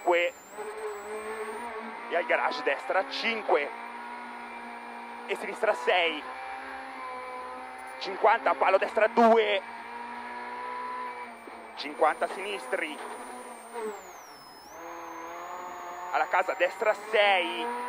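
A rally car engine drones and revs loudly inside the cabin.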